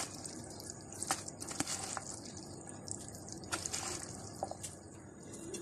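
A spoon scrapes and clicks against a plastic container while stirring food.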